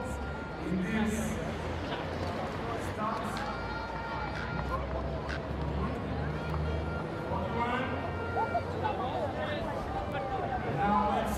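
Inline skate wheels roll and rumble on pavement.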